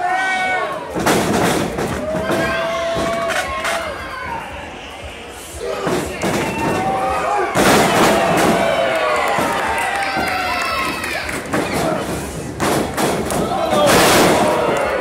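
Wrestlers' bodies slam onto a ring mat with loud thuds.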